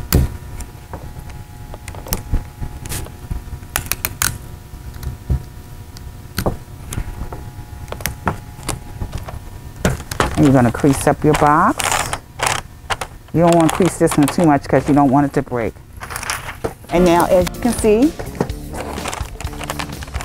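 Wrapping paper rustles and crinkles as it is folded and taped.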